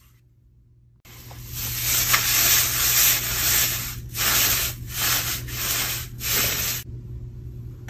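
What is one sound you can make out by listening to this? Shredded paper rustles and crackles loudly.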